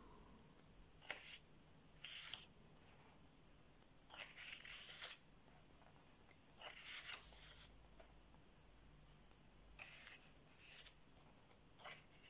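Paper pages rustle as they are turned one by one.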